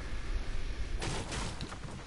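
A pickaxe strikes a wooden wall.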